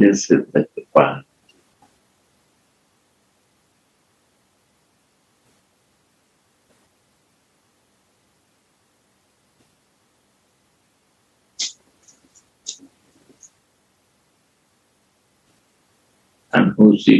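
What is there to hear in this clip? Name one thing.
An elderly man speaks slowly and calmly, close by, in short phrases with long pauses.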